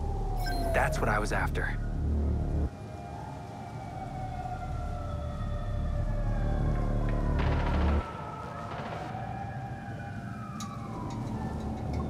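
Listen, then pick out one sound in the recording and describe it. Hands grip and scrape while climbing a metal rooftop.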